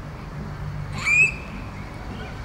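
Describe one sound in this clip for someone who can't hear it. A young child laughs.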